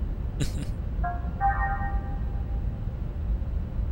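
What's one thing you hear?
A short electronic chime sounds.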